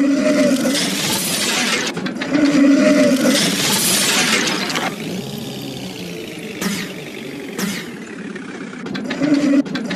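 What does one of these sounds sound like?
Mechanical whirring and clanking sound as a robot transforms.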